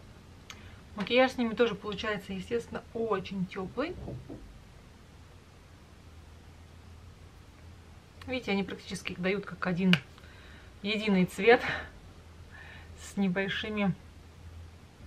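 A woman talks calmly and close by, in short bursts.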